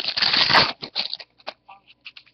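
A plastic wrapper crinkles and rustles close by.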